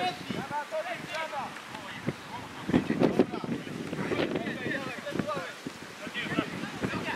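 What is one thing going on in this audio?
Men shout to each other across an open football pitch outdoors.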